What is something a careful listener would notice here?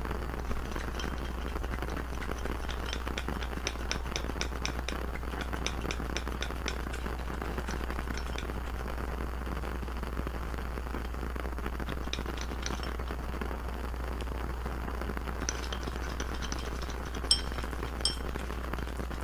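Small candies clink against a glass jar.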